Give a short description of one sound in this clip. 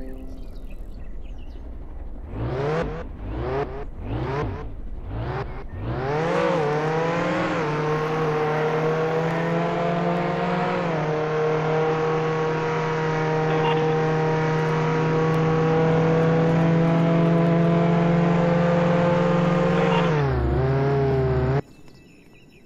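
A car engine revs in short bursts, then hums steadily at high speed and cuts off.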